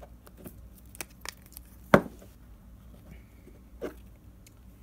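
A phone taps and clatters against a hard tabletop.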